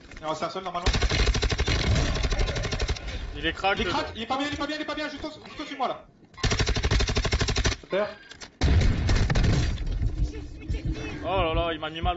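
Gunfire from a game rattles in quick bursts.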